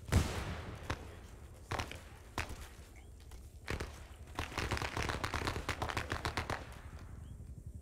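Explosions boom nearby, one after another.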